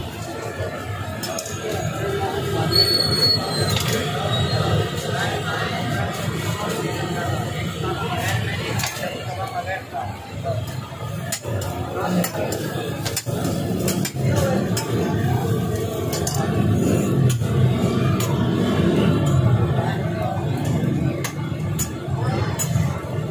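Men chatter nearby in a busy room.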